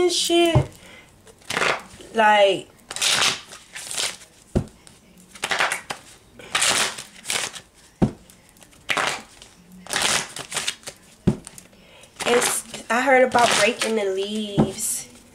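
A deck of cards is shuffled by hand, with soft riffling and tapping.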